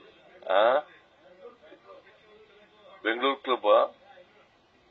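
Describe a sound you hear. An elderly man speaks forcefully into a microphone, heard over a loudspeaker.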